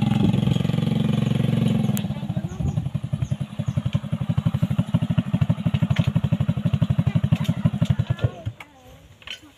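A motorbike engine chugs loudly close by, then cuts out.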